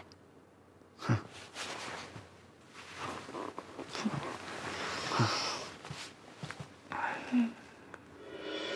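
A man speaks softly and gently.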